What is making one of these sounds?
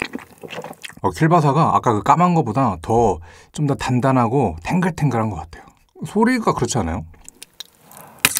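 A young man speaks close to a microphone.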